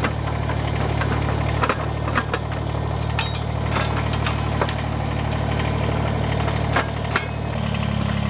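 Metal pallet forks clank and rattle as they are adjusted by hand.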